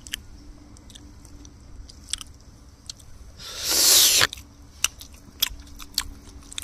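An elderly man chews food noisily with wet smacking sounds, close by.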